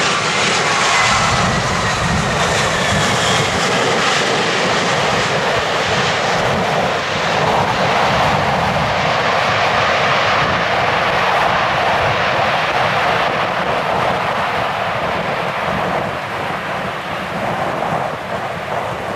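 A jet airliner's engines roar loudly in reverse thrust as it slows down the runway.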